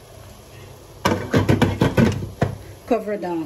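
A metal lid clatters onto a pot.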